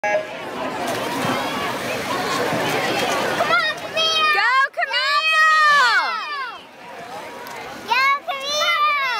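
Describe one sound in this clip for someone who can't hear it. A crowd of children and adults cheers and shouts loudly outdoors.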